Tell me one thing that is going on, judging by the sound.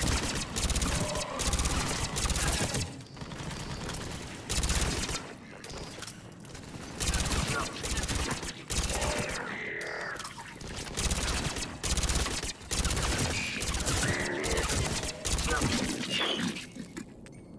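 Gunfire rattles in loud bursts.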